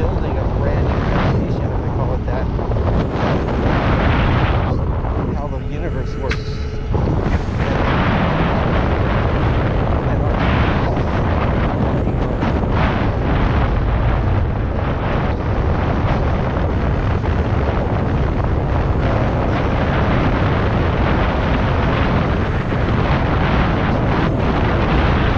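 Wind rumbles against the microphone of a fast-moving electric unicycle.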